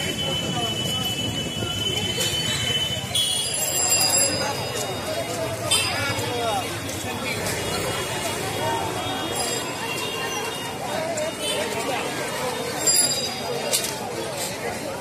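A crowd of people chatter outdoors all around.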